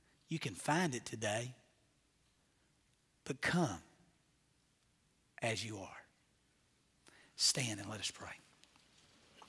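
A middle-aged man speaks slowly and firmly through a microphone, with pauses between phrases.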